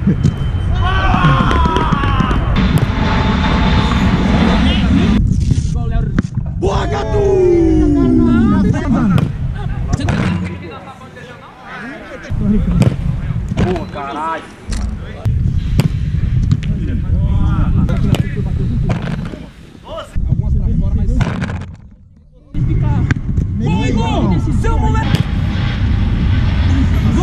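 Young men shout and cheer nearby.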